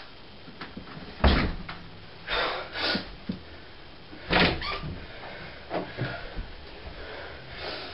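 Bare footsteps thud on a floor nearby.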